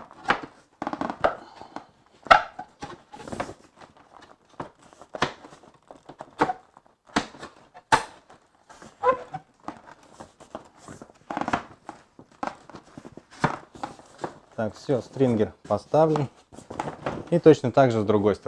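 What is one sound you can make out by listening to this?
Metal slats knock and clatter as they are laid down.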